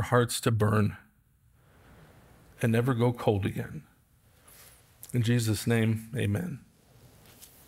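A middle-aged man speaks slowly and calmly into a microphone, with pauses.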